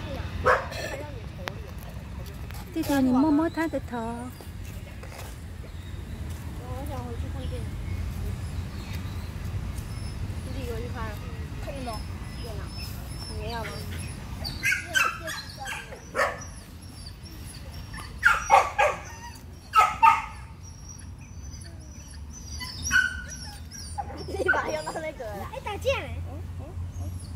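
Young boys talk casually close by.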